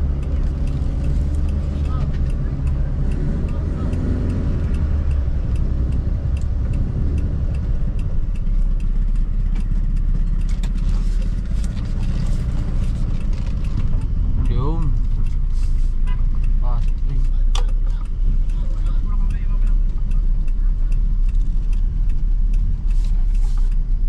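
A car engine idles with a low rumble inside the car.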